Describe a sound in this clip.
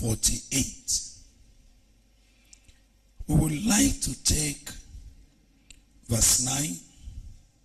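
A man speaks with animation into a microphone, pausing between phrases.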